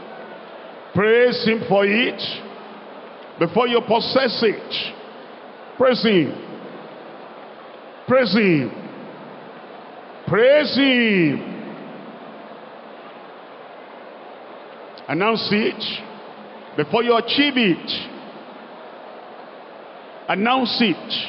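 A large crowd murmurs and prays in an echoing hall.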